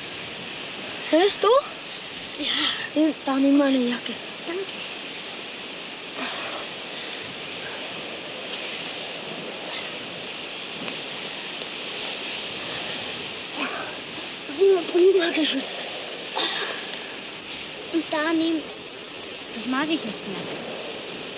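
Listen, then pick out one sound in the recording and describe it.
A child speaks nearby.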